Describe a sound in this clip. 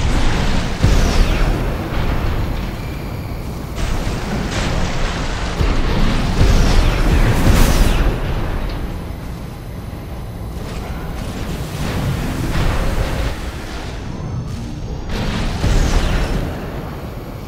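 The thrusters of a large walking war machine roar in bursts as it boosts.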